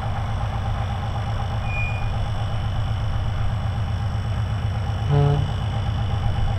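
A diesel locomotive engine rumbles and throbs steadily.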